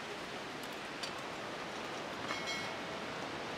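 A metal spatula clinks against a steel pot.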